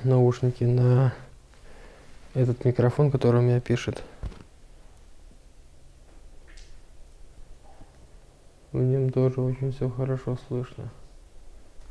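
A man speaks quietly and close up, in short bursts.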